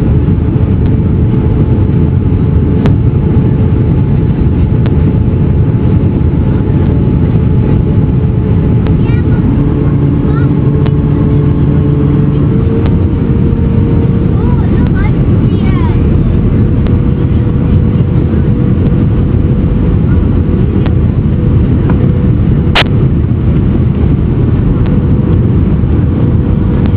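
Aircraft engines roar in a steady, low drone heard from inside the cabin.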